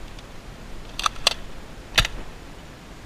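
A plastic toy blaster clicks sharply.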